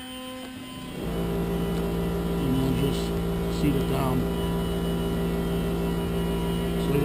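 A chainsaw engine idles steadily.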